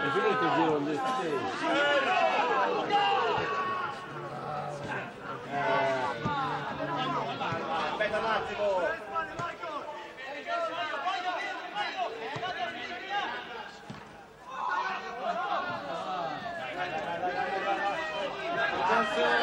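Spectators close by talk and call out outdoors.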